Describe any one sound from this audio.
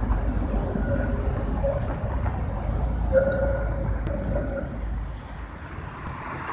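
A tram rumbles along rails through a curve.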